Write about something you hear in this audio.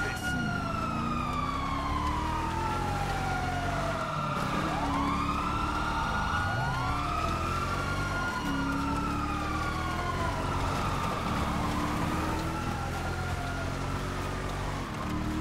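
A car engine revs up and drops in pitch through gear changes.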